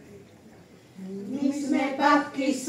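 A group of elderly women sing together through microphones.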